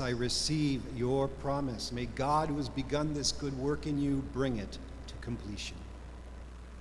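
An elderly man chants through a microphone in a large echoing hall.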